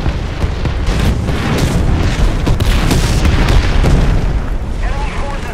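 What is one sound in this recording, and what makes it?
A heavy explosion roars and rumbles.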